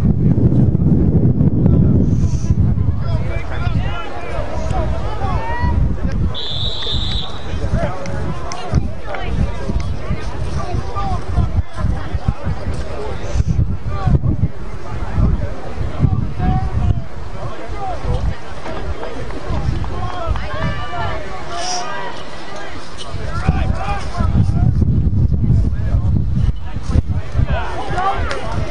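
A crowd of people talks and calls out outdoors at a distance.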